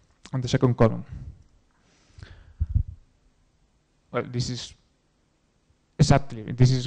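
A young man speaks through a microphone in a large hall, in short bursts with pauses.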